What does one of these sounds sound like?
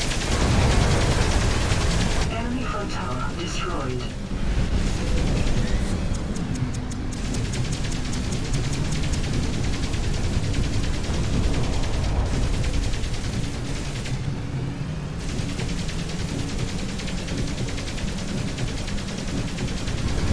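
Guns fire in rapid bursts in a video game.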